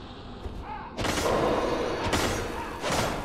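A magic spell bursts with a loud rushing roar.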